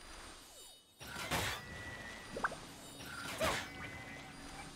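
A swirling wind burst whooshes loudly.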